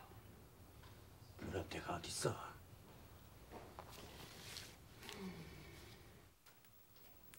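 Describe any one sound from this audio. A man answers calmly, close by.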